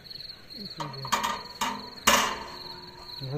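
A metal grill grate clatters as it is set onto a grill.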